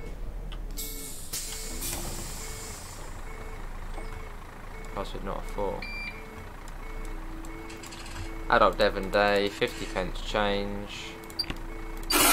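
A bus engine hums steadily at idle.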